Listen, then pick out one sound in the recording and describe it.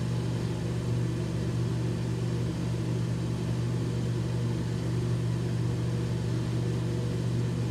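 An electric beard trimmer buzzes steadily up close.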